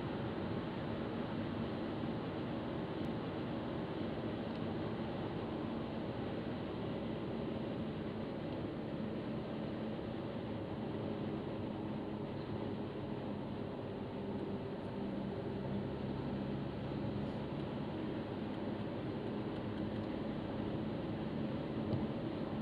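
Tyres roar steadily on a motorway.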